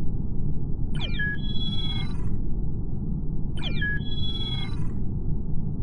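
Short electronic chimes ring out.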